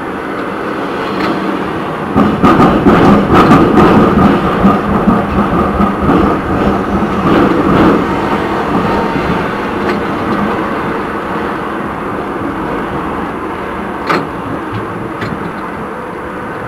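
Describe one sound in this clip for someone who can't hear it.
A tram rumbles and rattles along its rails.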